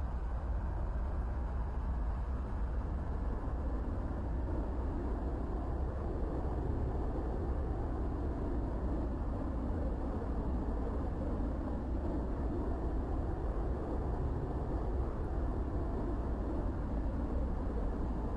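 A jet engine roars steadily as a jet taxis along a runway.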